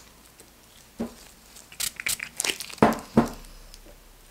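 Small plastic objects tap and clack on a tabletop.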